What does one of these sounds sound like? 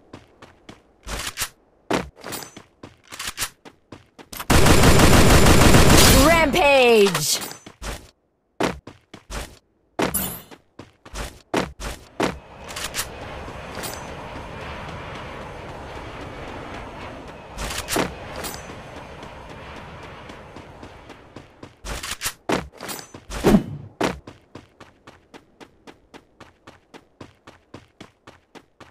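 Footsteps tap steadily on grass and dirt.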